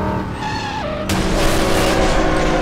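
Vehicles crash together with a loud crunch.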